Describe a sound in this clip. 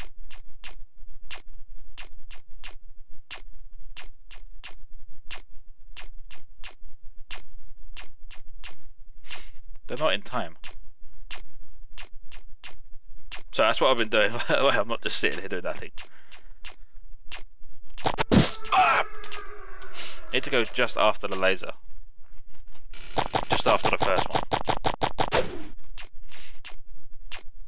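Electronic laser shots fire in a fast, steady rhythm.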